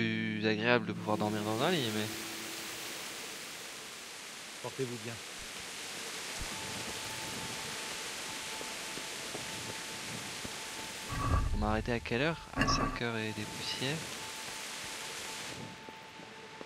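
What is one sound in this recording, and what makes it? Rain falls steadily and then stops.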